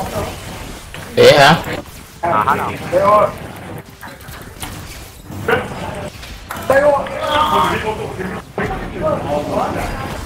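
Magic blasts burst and crackle during a video game battle.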